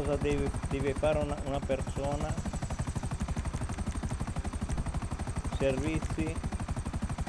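A helicopter's rotor thumps rapidly and steadily.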